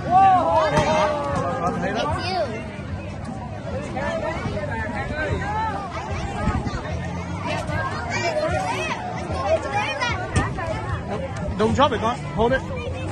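A crowd of adults and children chatters outdoors.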